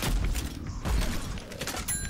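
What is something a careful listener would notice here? A grenade bursts with a dull boom.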